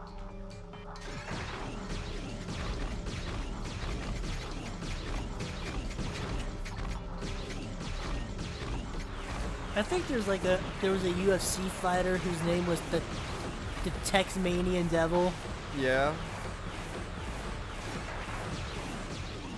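Rockets launch with whooshing blasts.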